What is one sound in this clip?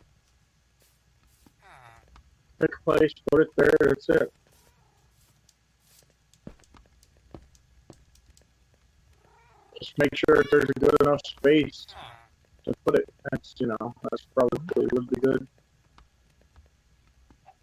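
Soft clicks sound as a game menu is browsed.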